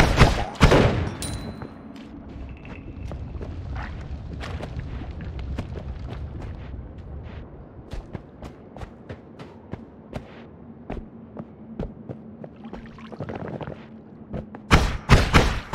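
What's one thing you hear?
Soft game footsteps and small clicks tick along steadily.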